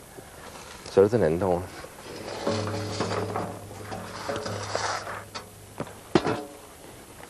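A metal lid clanks on a drum.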